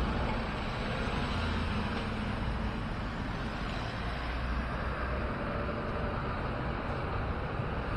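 Cars drive past close by on a road.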